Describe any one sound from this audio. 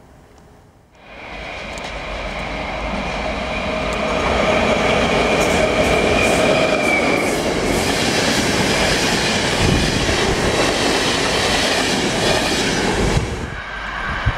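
A passenger train approaches and rushes past close by, wheels clattering loudly on the rails.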